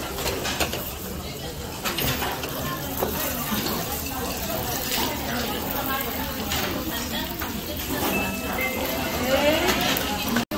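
Shellfish sizzle and crackle on a hot iron plate.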